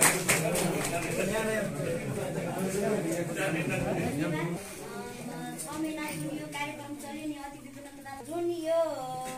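A woman speaks through a microphone, addressing a gathering.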